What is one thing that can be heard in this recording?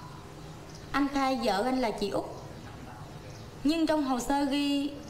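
A young woman speaks firmly and questioningly.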